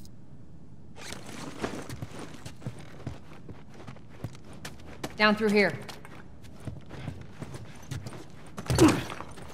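Footsteps crunch over scattered debris.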